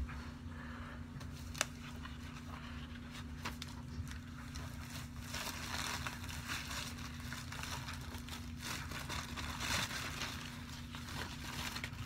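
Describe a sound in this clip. Plastic packaging crinkles and rustles.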